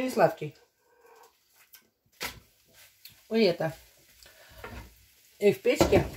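A metal spatula scrapes and clinks in a frying pan.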